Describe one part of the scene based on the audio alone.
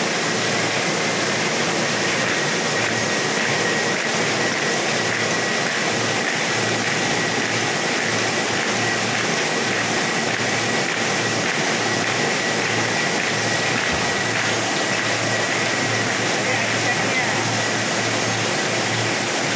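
A paper folding machine runs with a loud, steady clatter and hum.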